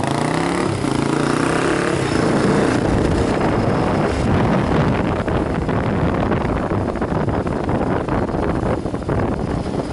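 Wind buffets loudly against a rider's helmet.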